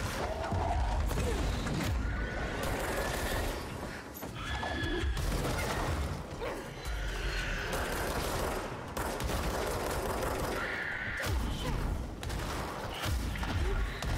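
Explosions boom and debris crashes.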